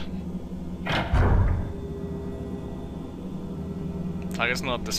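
A heavy wooden door rattles as it is pushed.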